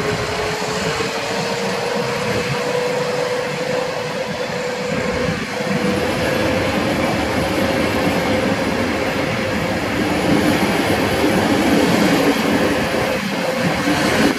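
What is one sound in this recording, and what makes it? A steady whine hums from the passing train.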